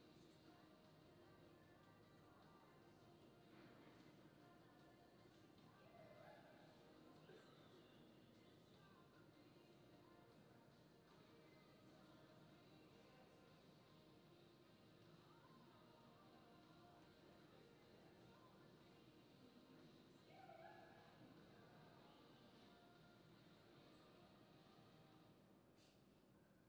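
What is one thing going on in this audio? Hooves thud softly on loose dirt in a large indoor arena.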